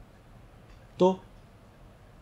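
A middle-aged man says a short word close to a microphone.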